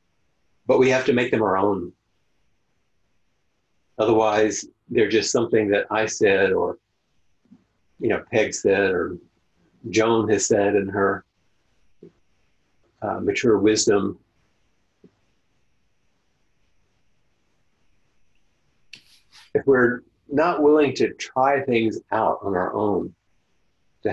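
An older man speaks calmly into a microphone, with pauses, as if over an online call.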